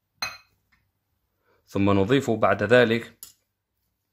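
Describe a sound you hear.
A tin can is set down on a table with a soft knock.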